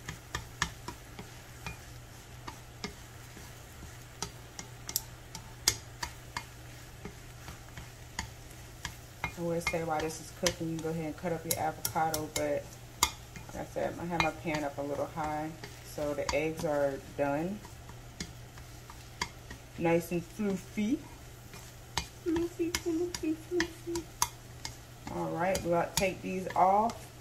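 Chopsticks tap and scrape against a frying pan.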